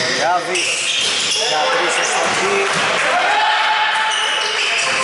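Basketball shoes squeak on a hardwood court in an echoing gym.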